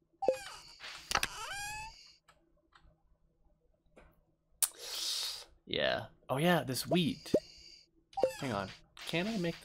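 Short electronic game chimes and tones play.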